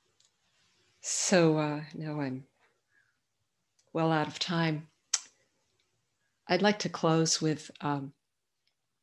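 An elderly woman speaks calmly over an online call, in short phrases with pauses.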